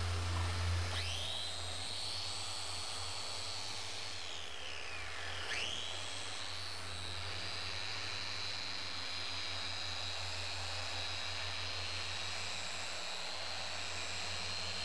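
A small power tool whines steadily as it polishes.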